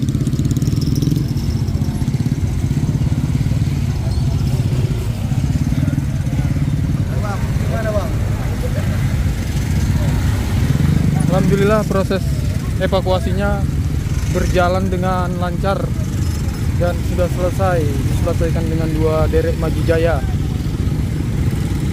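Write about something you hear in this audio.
Motorcycle engines rumble and putter nearby.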